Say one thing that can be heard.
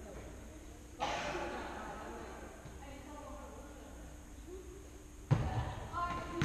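A ball is kicked with dull thuds that echo.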